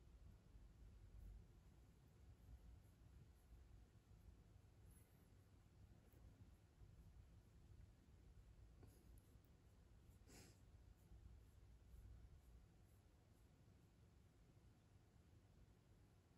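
A cat purrs softly up close.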